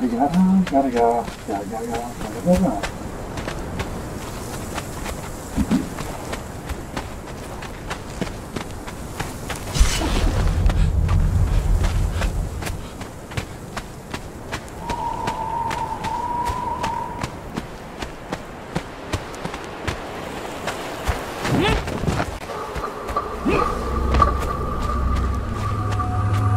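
Footsteps tap steadily on stone.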